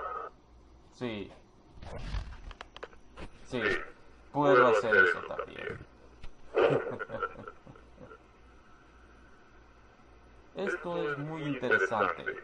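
A man speaks in a deep, muffled voice, close by.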